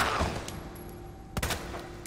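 A handgun fires sharp shots.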